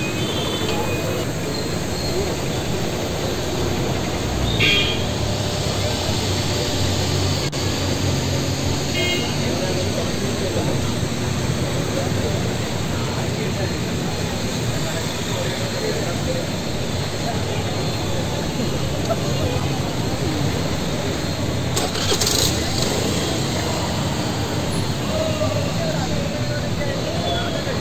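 Traffic hums steadily along a busy street outdoors.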